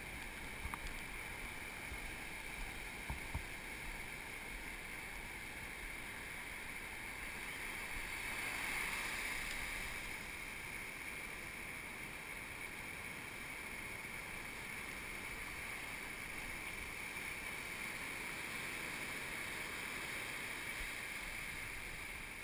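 Surf breaks and rumbles steadily in the distance, outdoors.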